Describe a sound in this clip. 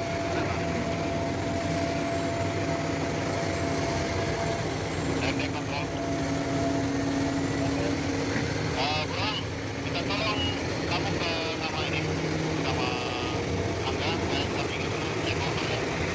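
Heavy diesel engines rumble steadily outdoors.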